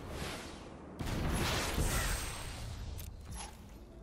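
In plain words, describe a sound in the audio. A loud whooshing game sound effect swells and fades.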